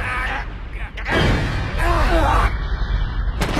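A burst of flame roars.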